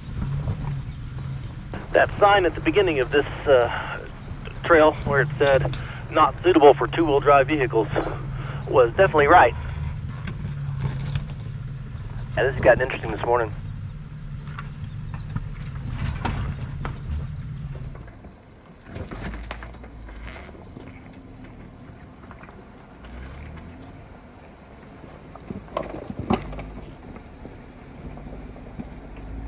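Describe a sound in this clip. Tyres crunch over loose rocks.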